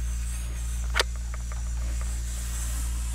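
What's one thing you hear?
A plastic toy plane clicks and rattles as it is waved about by hand.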